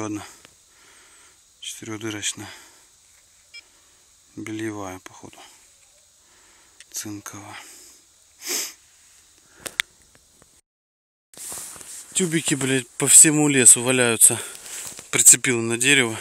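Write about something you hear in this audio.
A man speaks close by in short phrases.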